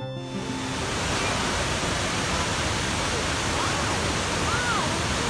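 A waterfall roars steadily as water pours into a pool.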